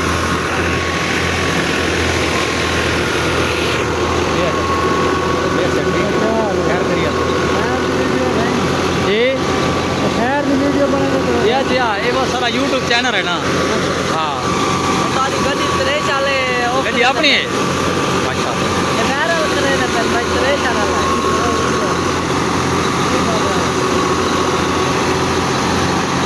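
A tractor engine hums steadily nearby.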